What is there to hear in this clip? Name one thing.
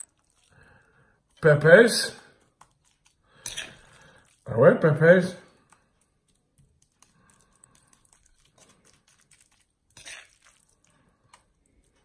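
A spoon scrapes filling into a pepper.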